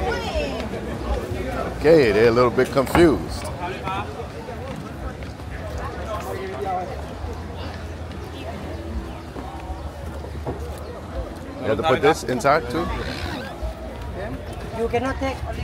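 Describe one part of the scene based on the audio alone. Footsteps thud on a wooden pier.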